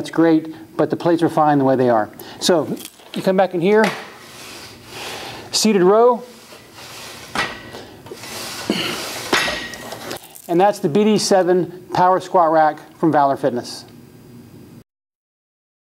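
A middle-aged man speaks clearly and calmly into a close microphone.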